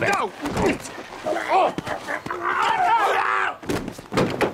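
An elderly man cries out in strained, wavering groans close by.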